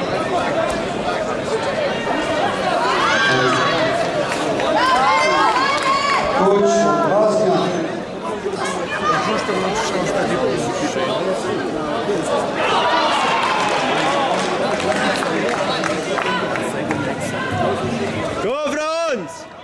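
Spectators shout and cheer loudly in a large echoing hall.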